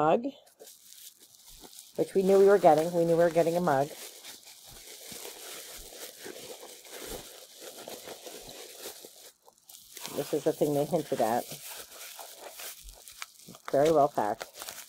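Bubble wrap crinkles and rustles in hands.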